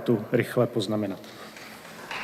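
A man speaks calmly through a microphone in a large hall.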